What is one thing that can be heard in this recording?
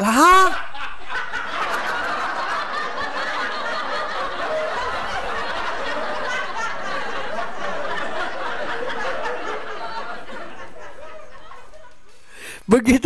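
A man laughs loudly and heartily close to a microphone.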